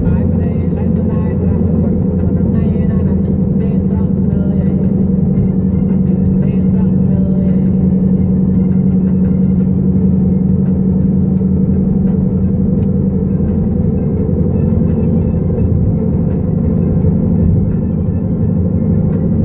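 A car's engine hums steadily as it drives at speed.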